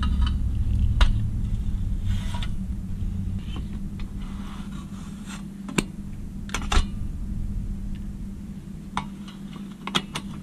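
Metal parts click and clink as pliers work on a bracket.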